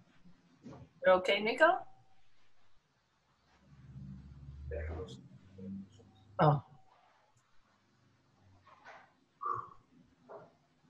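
A young woman speaks briefly in a low voice, close to the microphone.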